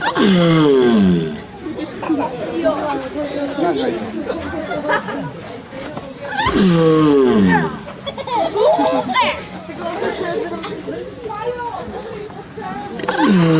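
A giant tortoise lets out loud, deep, drawn-out groans that fall in pitch, again and again.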